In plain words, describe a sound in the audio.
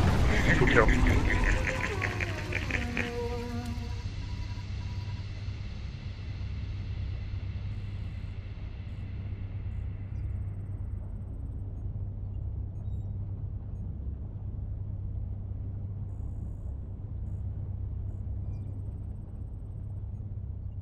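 A machine hums low and steadily.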